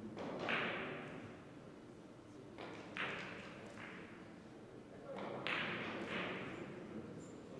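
Billiard balls click sharply against each other in a large echoing hall.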